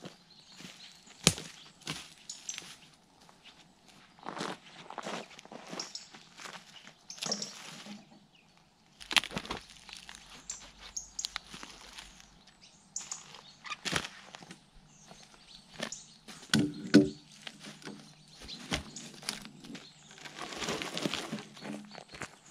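Footsteps crunch on twigs and forest litter outdoors.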